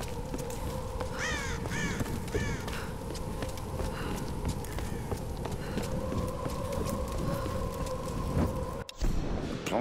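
Footsteps crunch quickly over snowy ground.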